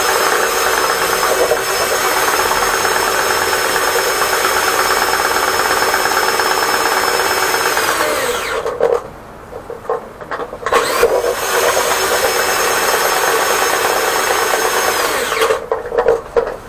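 Water sprays from a hose with a loud, steady hiss that stops briefly and starts again.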